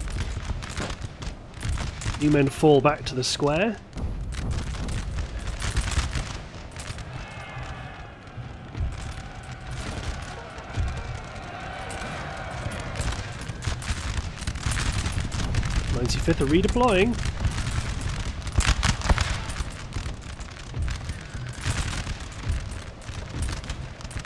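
Musket volleys crackle and pop across a battlefield.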